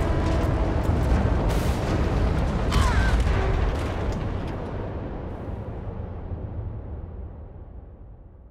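A deep explosion rumbles loudly and slowly fades away.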